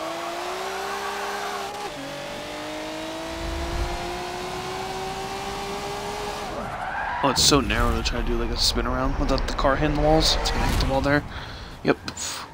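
Tyres squeal as a car slides through a turn.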